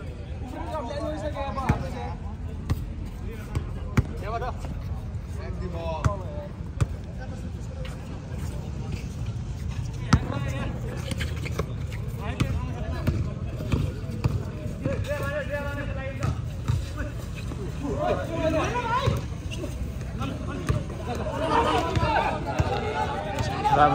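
Young men shout and call out to each other on the court.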